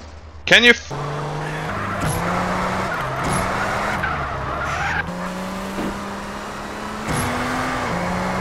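A car engine hums and revs steadily.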